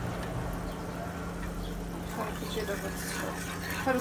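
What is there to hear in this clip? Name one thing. A metal spoon scrapes and clinks inside a small pot.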